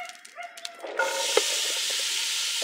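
Chopped onions drop into a hot metal pan.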